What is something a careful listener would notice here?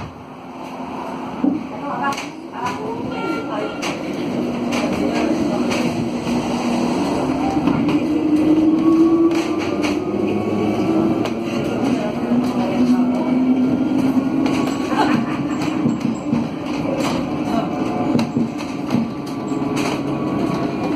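A tram hums and whines as it rolls along.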